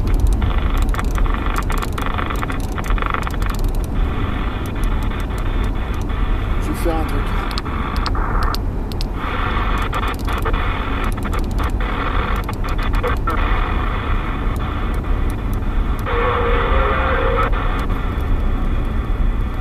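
A radio channel knob clicks as it is turned.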